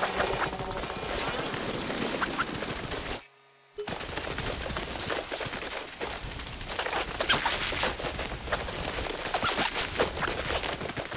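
Heavy boots crunch on loose gravel and rock with each step.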